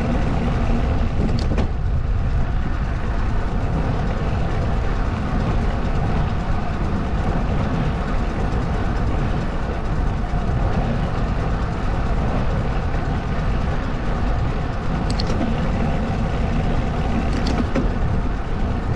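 Tyres roll steadily over asphalt.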